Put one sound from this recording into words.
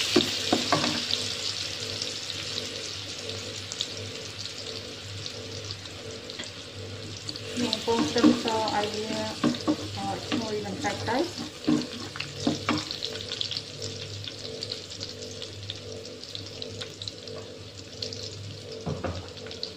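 Garlic sizzles steadily in hot oil in a pan.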